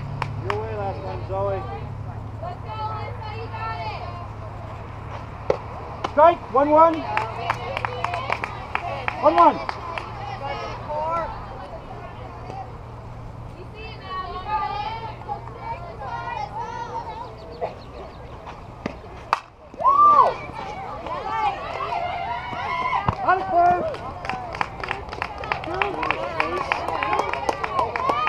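Young women cheer and chant loudly from close by, outdoors.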